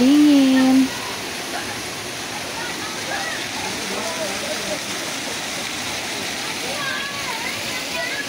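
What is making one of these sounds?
Water splashes steadily down a small waterfall.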